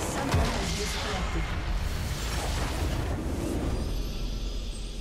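A huge magical explosion booms and rumbles.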